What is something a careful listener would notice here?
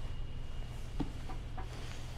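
A hand picks up a phone with a light knock.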